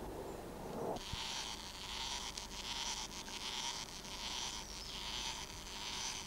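A wind-up toy whirs and clicks as it walks across gravel.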